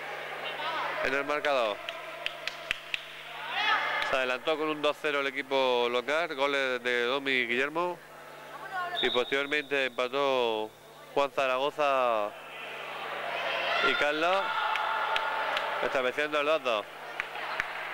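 Young men shout across an echoing court.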